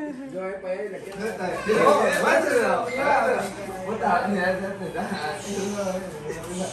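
Several men and women chat and laugh loudly.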